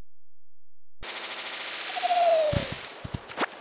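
Leaves rustle as a tree is shaken.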